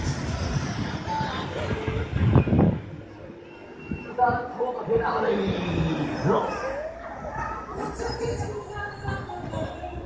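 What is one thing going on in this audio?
Riders scream loudly on a spinning fairground ride.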